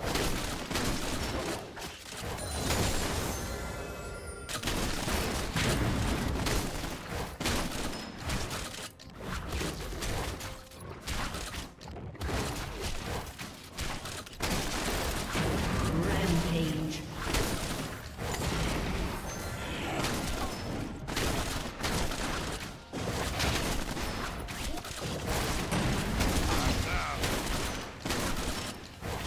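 Video game spells and attacks whoosh, crackle and bang in quick bursts.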